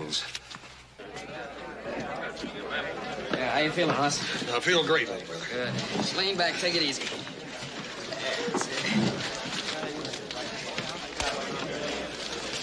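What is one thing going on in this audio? A crowd of men chatters and shouts in a noisy room.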